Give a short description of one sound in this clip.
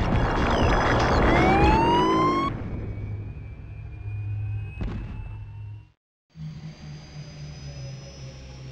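A low electronic hum of game music plays.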